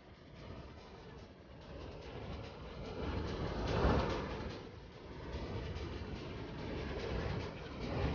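A waterfall roars in the distance.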